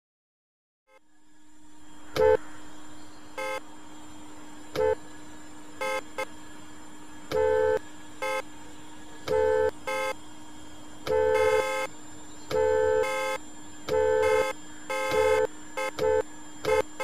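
An electric car's motor hums steadily.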